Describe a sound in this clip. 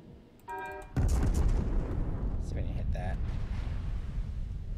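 Big naval guns fire with a deep, loud boom that rumbles on.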